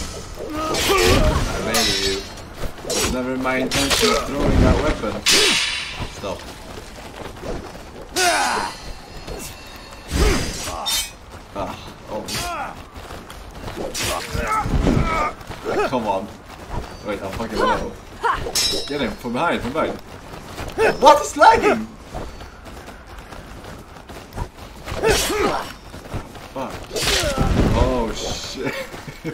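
Swords clash and slash.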